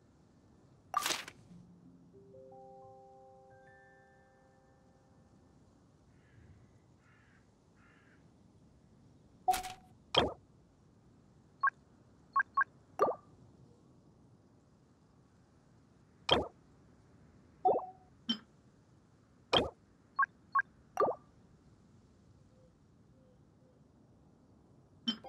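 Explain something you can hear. Short interface clicks and blips sound as menu buttons are pressed.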